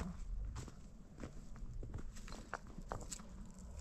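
Stones clack against one another as they are picked up.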